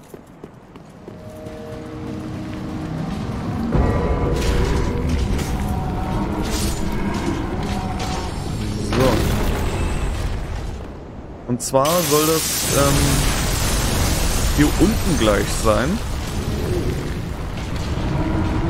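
A deep rumbling roar builds and goes on steadily.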